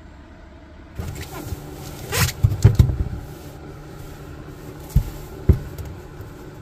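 Boots thump and scuff on a hard floor.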